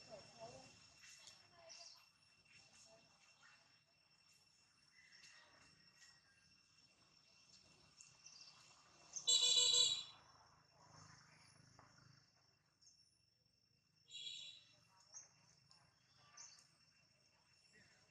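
A baby monkey suckles with soft wet smacking sounds.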